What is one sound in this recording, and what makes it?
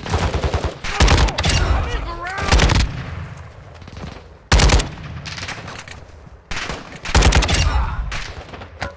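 Gunshots crack loudly nearby in short bursts.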